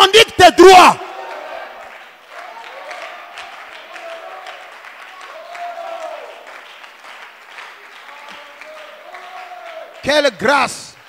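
A crowd of people prays aloud in a low murmur.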